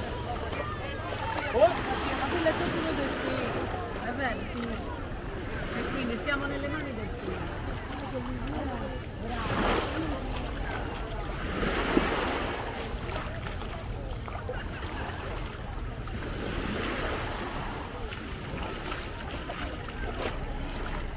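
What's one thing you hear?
Many people chatter and shout on a busy beach outdoors.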